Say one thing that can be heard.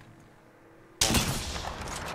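A rifle fires a loud shot close by.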